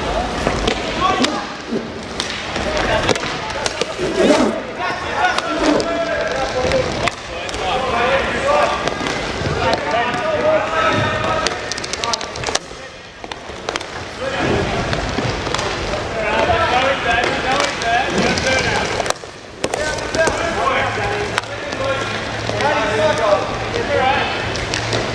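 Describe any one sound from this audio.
Hockey sticks clack against a ball on a hard floor.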